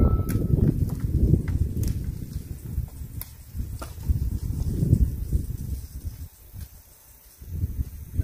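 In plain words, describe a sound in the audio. Hands pull roots from loose soil with rustling and crunching.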